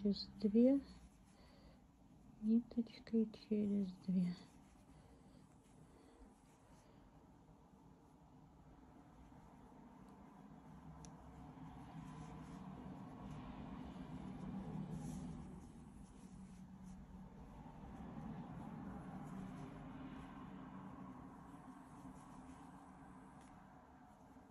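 Yarn rustles softly as a crochet hook pulls loops through it.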